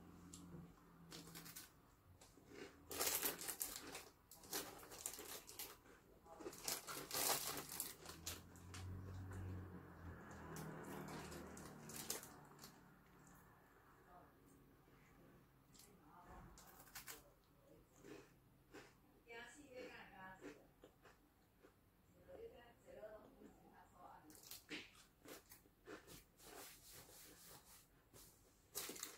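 A young woman crunches on a crisp snack up close.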